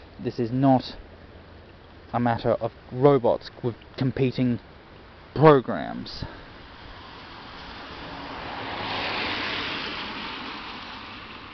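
Light rain patters softly on wet pavement outdoors.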